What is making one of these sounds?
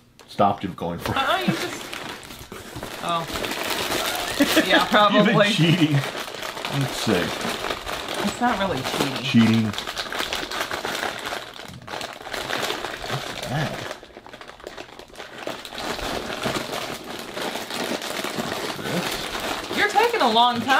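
Cardboard rustles and crinkles as a box is handled.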